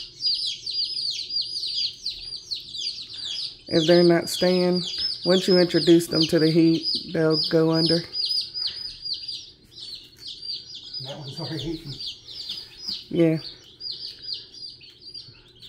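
Many baby chicks cheep steadily and shrilly close by.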